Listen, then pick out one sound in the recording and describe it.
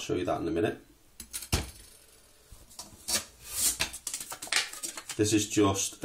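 Metal pot and lid clink and scrape as they are handled.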